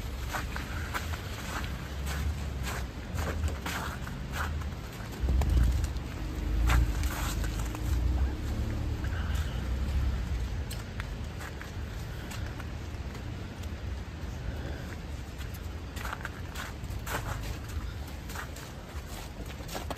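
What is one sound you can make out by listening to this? Footsteps crunch and scuff on a wet, snowy pavement.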